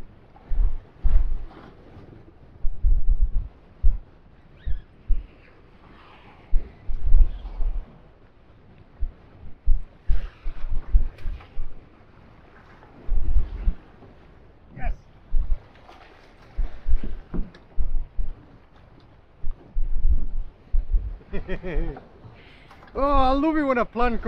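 Wind gusts loudly across the open water, buffeting a microphone.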